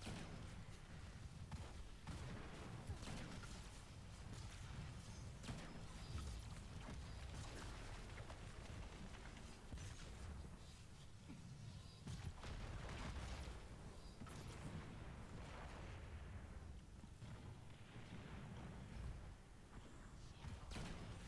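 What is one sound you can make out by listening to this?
Gunfire rings out in quick bursts.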